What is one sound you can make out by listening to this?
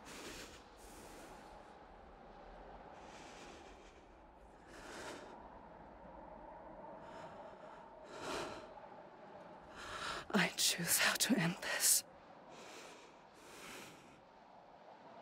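A young woman breathes hard and gasps with strain close by.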